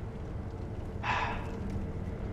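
Footsteps run quickly over wooden boards.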